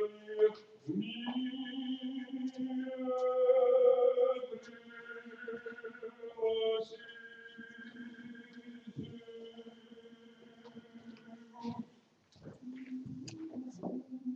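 A man chants in long, sustained notes in an echoing hall.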